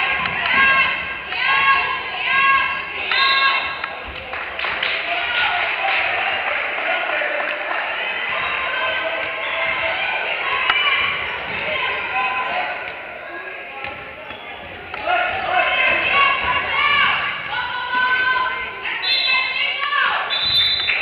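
A crowd of spectators chatters and cheers in an echoing hall.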